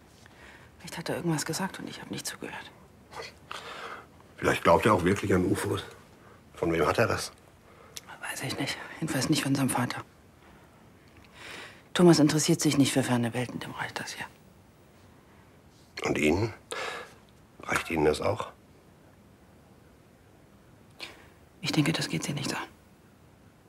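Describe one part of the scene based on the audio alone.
An older man speaks in a low, serious voice up close.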